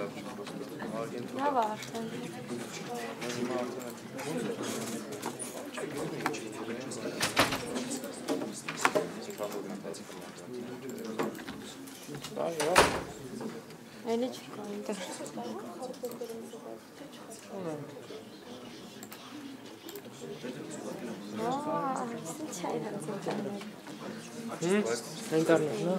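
A young man speaks calmly to a room, heard with a slight echo.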